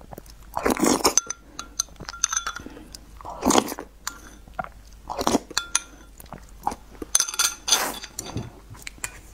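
A person slurps food loudly close to a microphone.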